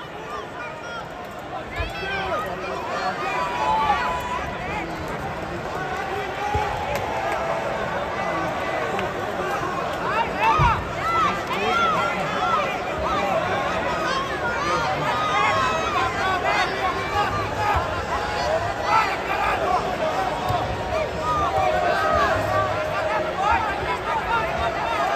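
A crowd of men and women shout and chatter in a large echoing hall.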